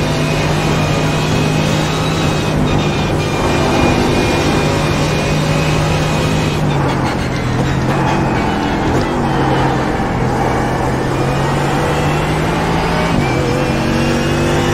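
A racing car engine roars at high revs.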